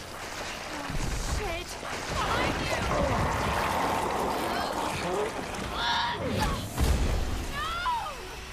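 A monster roars and growls loudly.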